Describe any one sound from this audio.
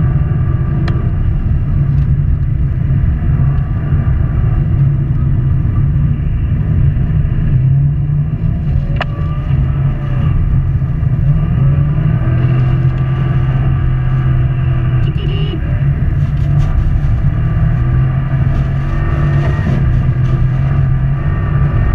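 A turbocharged flat-four rally car engine roars at full throttle, heard from inside the car.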